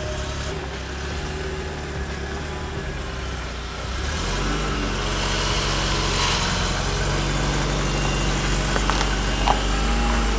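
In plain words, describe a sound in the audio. A van engine idles with a steady low rumble.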